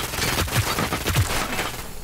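An explosion booms close by.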